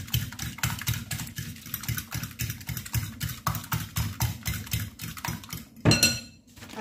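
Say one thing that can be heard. A fork whisks eggs rapidly in a glass bowl, clicking against the sides.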